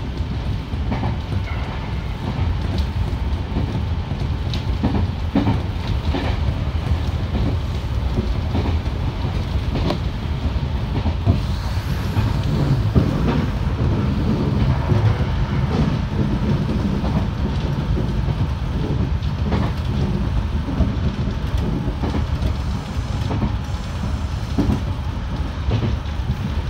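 A train rumbles steadily along the rails from inside the cab.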